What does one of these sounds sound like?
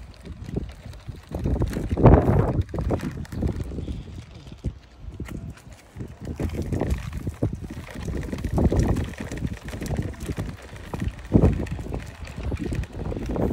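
Small plastic wheels of a child's tricycle rumble and crunch over rough pavement outdoors.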